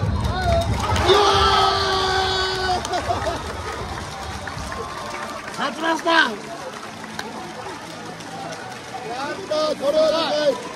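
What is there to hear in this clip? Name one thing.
Two young men cheer and shout excitedly close by.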